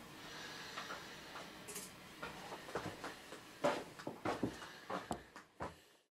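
Footsteps thud on a floor.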